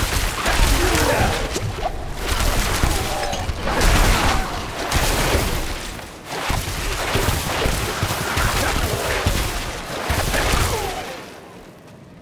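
Lightning spells crackle and zap in bursts.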